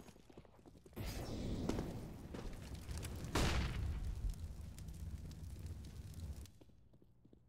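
Fire roars loudly with a rushing whoosh.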